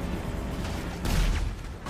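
A plane crashes into the ground with a loud thud.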